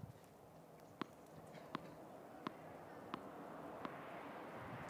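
A tennis ball bounces several times on a hard court.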